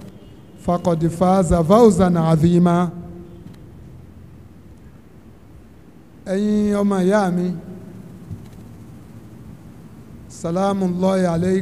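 An elderly man speaks in short bursts through a microphone.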